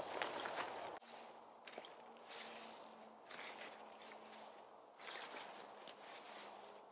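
Leaves crunch under a man's footsteps.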